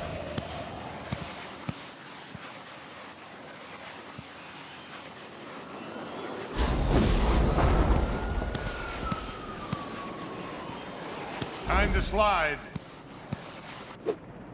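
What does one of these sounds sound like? Skates hiss and scrape across ice.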